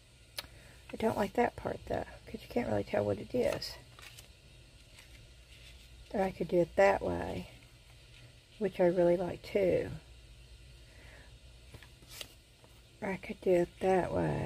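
Paper rustles softly as it is pressed and smoothed down.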